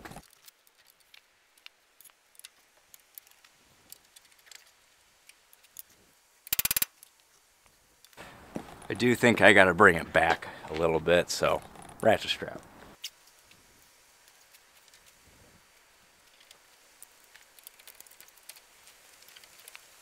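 Metal tools clink against a brake assembly.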